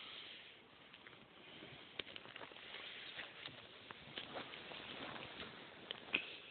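Cloth rustles and crinkles close by as it is handled.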